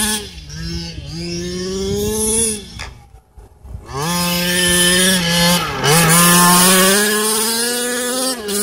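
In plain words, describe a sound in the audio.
A remote-control car's electric motor whines, rising and falling in pitch as it speeds across grass.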